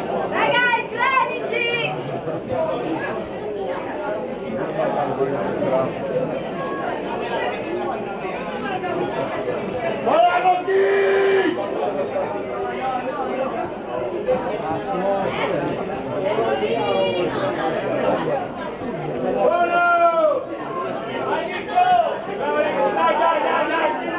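Spectators shout and call out outdoors.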